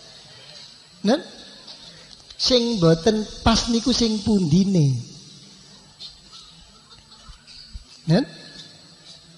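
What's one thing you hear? An elderly man speaks slowly and calmly through a microphone.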